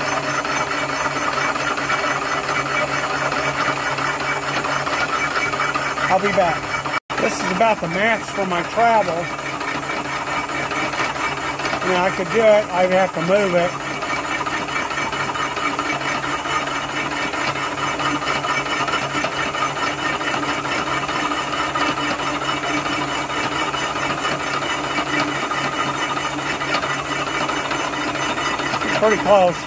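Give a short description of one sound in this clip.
A milling cutter grinds and chatters through metal.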